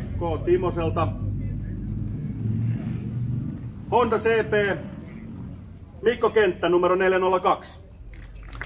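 A man speaks into a microphone over loudspeakers, outdoors.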